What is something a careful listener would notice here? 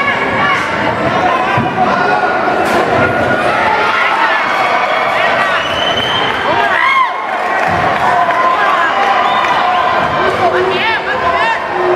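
A large crowd shouts and cheers loudly throughout.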